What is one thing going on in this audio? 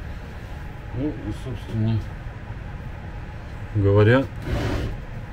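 A young man speaks briefly and casually close by.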